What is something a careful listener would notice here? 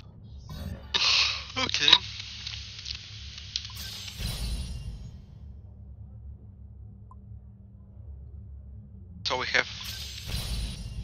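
A game menu plays a bright chime as an item activates.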